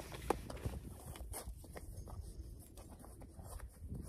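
Bootlaces rustle and zip as they are pulled tight.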